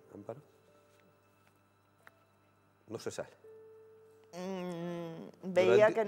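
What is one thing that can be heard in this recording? A middle-aged woman speaks with emotion, close to a microphone.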